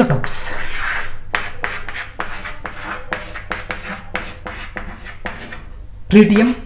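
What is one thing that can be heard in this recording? Chalk taps and scrapes against a board.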